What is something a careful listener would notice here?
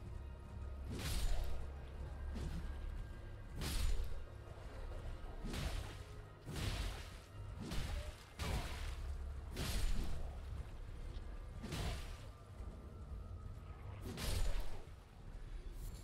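A blade swishes through the air in repeated heavy slashes.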